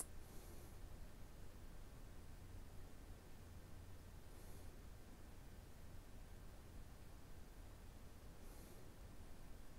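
A man breathes slowly and softly.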